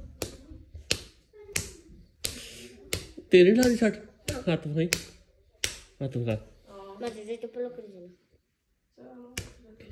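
Hands clap together in a quick rhythm.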